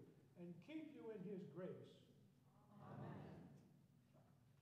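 An elderly man speaks calmly through a microphone in a large echoing room.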